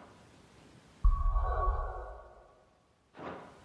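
A low whoosh sweeps through briefly.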